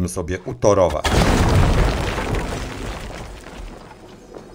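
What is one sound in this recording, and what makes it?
A stone wall bursts apart and crumbles with a heavy rumbling crash.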